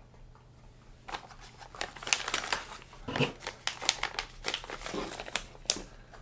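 A plastic package crinkles in someone's hands.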